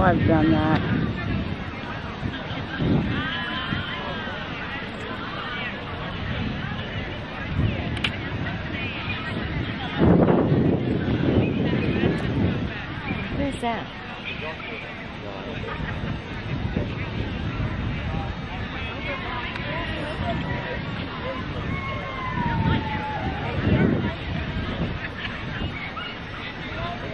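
A crowd of men and women chatters outdoors, near and far.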